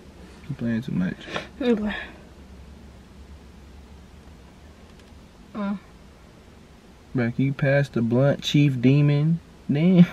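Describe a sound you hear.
A young man speaks casually nearby.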